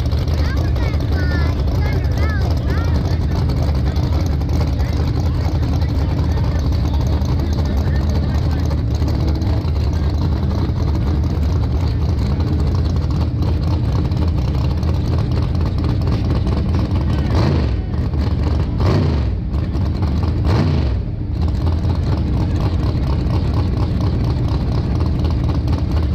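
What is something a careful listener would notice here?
Car engines rumble loudly and rev outdoors.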